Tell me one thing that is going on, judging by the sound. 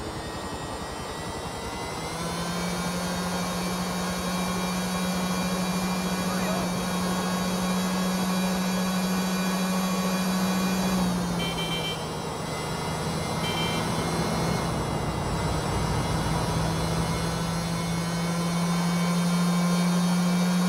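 A motorbike engine hums steadily at speed.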